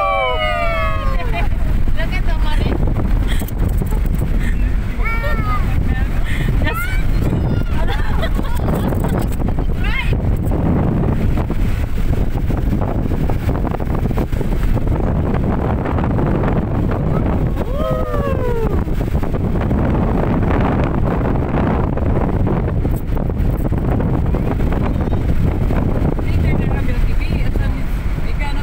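Wind rushes loudly past a moving car.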